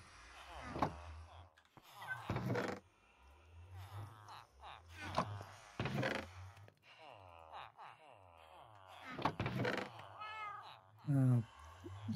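A wooden chest creaks open and thuds shut several times.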